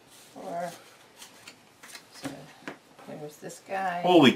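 Playing cards are placed and slid on a tabletop.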